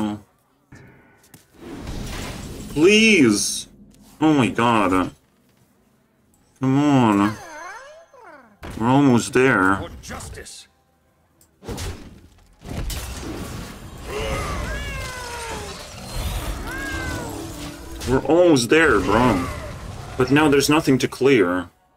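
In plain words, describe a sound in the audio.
Playful computer game sound effects chime, swoosh and thud.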